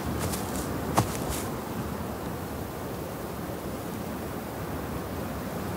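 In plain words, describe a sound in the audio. Wind blows steadily through the trees outdoors.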